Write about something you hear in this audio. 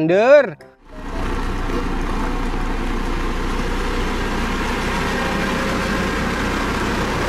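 A heavy road roller's engine rumbles steadily outdoors.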